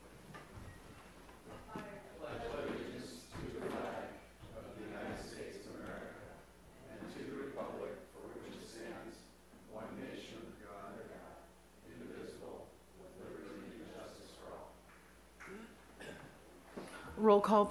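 A group of people recite together in unison, softly and with some echo.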